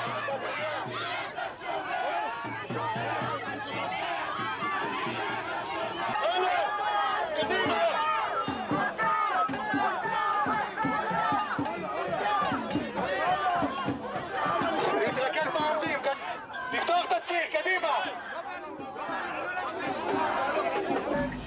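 A large crowd of men and women shouts and chants loudly outdoors.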